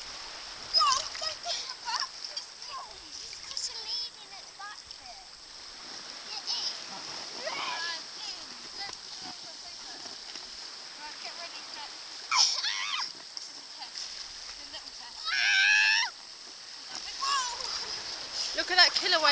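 Water splashes as children wade and push a float.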